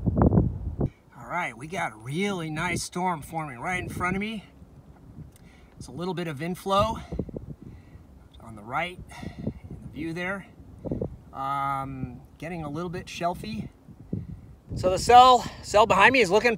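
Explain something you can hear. A middle-aged man speaks calmly close to a microphone outdoors.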